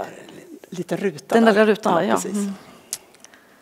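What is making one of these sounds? A woman speaks with animation into a microphone in a large echoing room.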